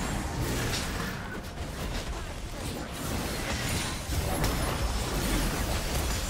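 Clicks and impacts of game attacks ring out.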